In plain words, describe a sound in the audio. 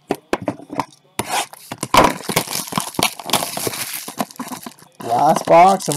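A cardboard box rustles and scrapes as hands handle it.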